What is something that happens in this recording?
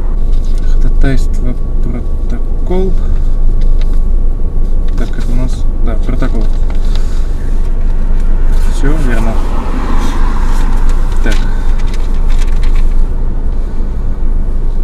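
Papers rustle in someone's hands.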